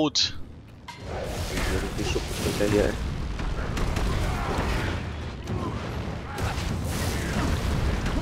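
Magic spells crackle and burst in a rapid, noisy battle.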